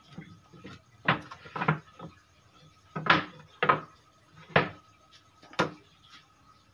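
Wooden boards knock and clatter against each other.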